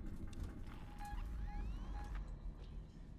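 A motion tracker beeps in short, regular pulses.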